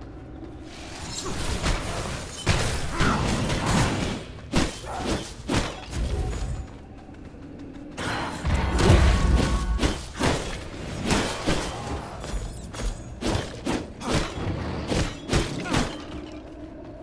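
Magic blasts whoosh and boom in a fight.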